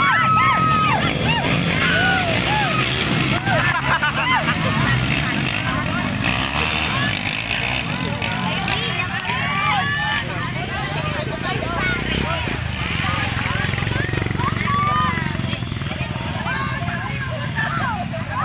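A crowd of men and women shout and cheer outdoors.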